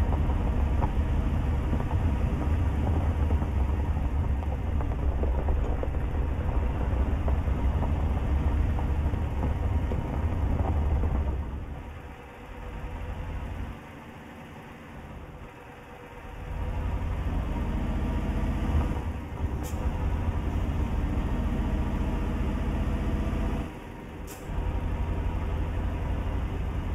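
A truck engine rumbles low and steady, dropping away for a while before picking up again.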